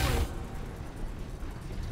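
Lightning crackles and bursts loudly.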